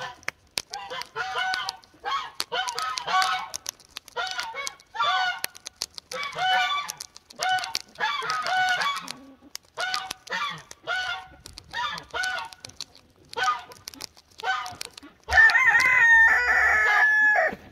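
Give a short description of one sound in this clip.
A duck pecks and taps at a rubber shoe.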